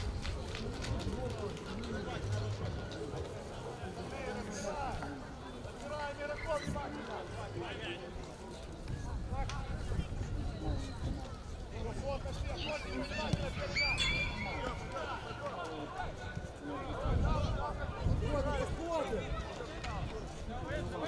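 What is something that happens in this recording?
A crowd of spectators chatters nearby.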